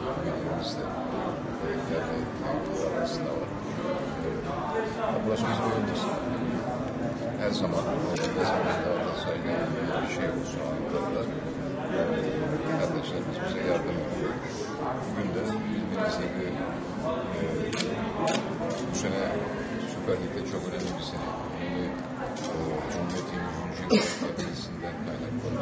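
An older man speaks calmly into close microphones.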